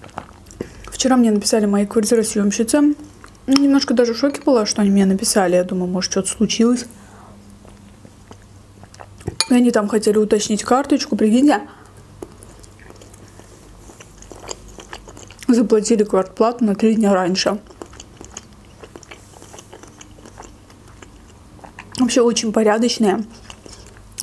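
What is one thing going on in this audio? A young woman speaks softly and calmly into a close microphone.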